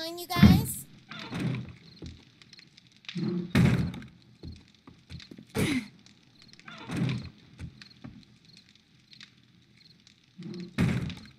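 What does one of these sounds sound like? A wooden hatch bangs open and shut, again and again.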